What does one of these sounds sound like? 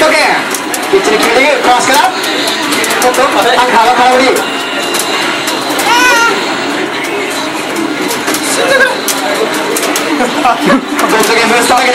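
An arcade fighting game plays loud music and sound effects of blows and clashing blades.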